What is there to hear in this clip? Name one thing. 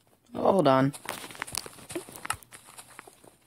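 A pickaxe digs into dirt and stone with short crunches.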